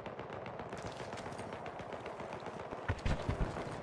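Footsteps crunch quickly over gravel.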